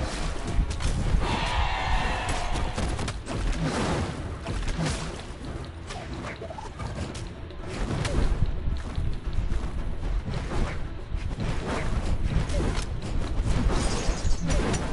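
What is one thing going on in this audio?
Sword hits and whooshes clash rapidly.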